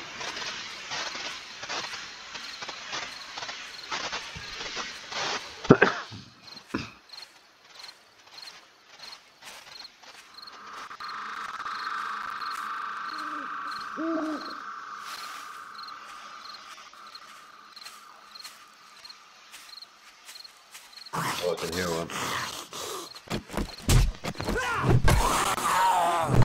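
Footsteps rustle steadily through grass and undergrowth.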